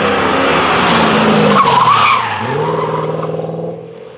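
Tyres screech on tarmac as a car slides through a corner.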